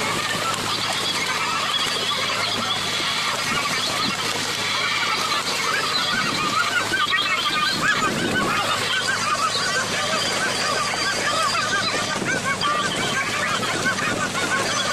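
Fish thrash and splash loudly in water.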